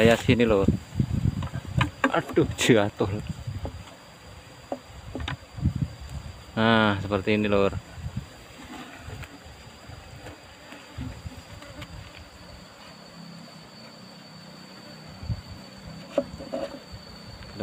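A wooden frame knocks and scrapes against a wooden box.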